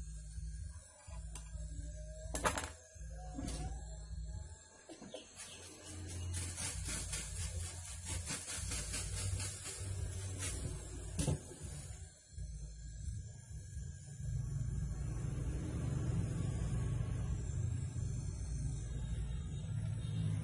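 A gas torch hisses and roars steadily.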